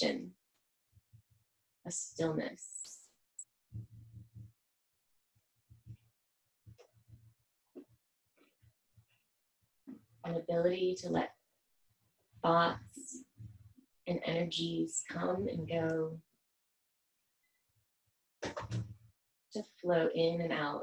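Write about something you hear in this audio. A woman speaks calmly and softly, in short phrases with pauses.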